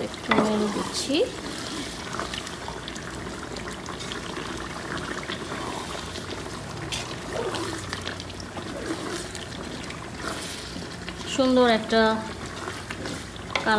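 A wooden spoon stirs a thick stew in a metal pot.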